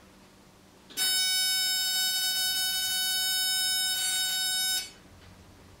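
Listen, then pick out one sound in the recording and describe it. A heater gives a long, steady electronic beep.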